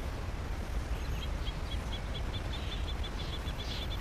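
A horse tears and chews grass.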